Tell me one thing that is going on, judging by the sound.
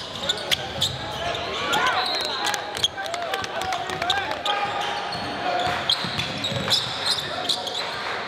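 A basketball bounces on the floor.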